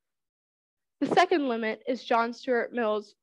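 A young woman sings in clear, held notes.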